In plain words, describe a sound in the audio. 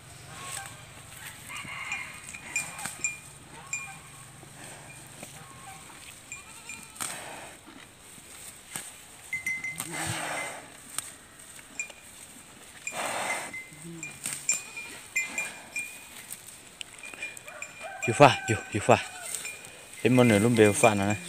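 A cow tears at grass and chews close by.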